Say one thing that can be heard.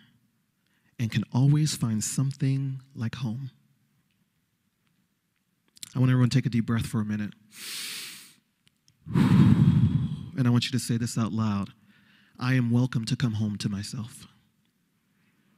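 A man speaks calmly and slowly into a microphone, with pauses.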